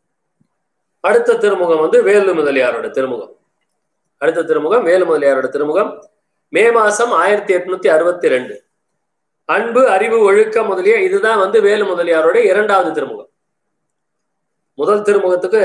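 An elderly man chants aloud in a steady, sing-song voice, close by.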